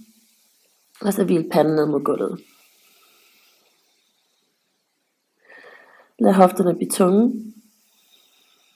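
A woman speaks calmly and softly into a close microphone.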